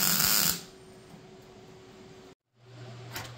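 An electric welder crackles and buzzes.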